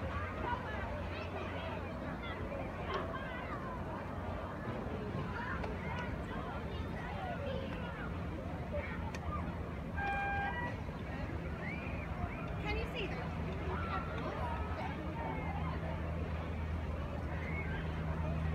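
Calm sea water laps gently.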